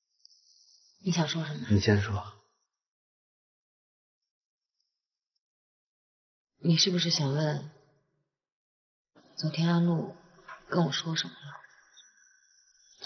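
A young woman speaks quietly and calmly nearby.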